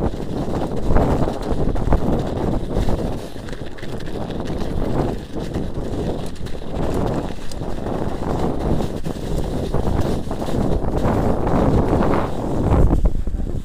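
Bicycle tyres crunch over packed snow.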